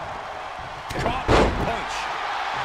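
Bodies slam heavily onto a ring mat.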